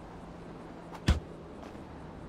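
A heavy punch thuds.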